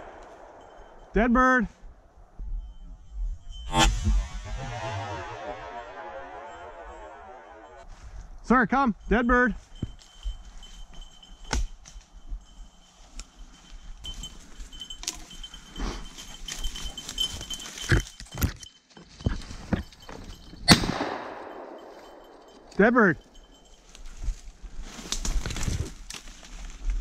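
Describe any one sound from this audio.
Footsteps crunch through dry leaves and brush.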